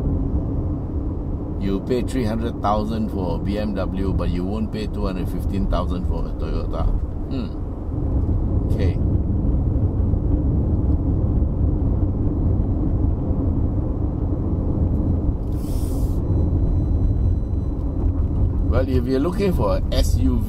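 A car's road and engine noise rumbles low and steady.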